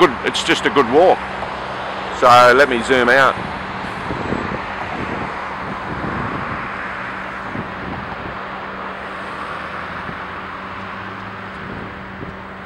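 A distant city hum drones steadily outdoors.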